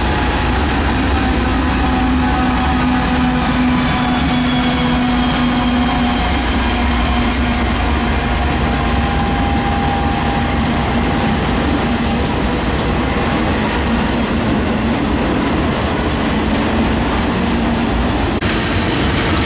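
A locomotive engine drones loudly as it passes.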